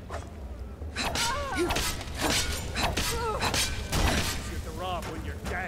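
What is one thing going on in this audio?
A fire spell roars and crackles.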